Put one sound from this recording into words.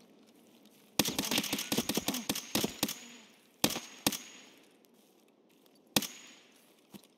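Rifle shots crack in rapid bursts, with echoes trailing after.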